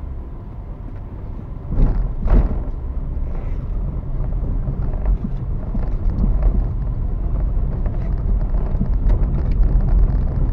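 A car engine hums steadily as the car drives along a street.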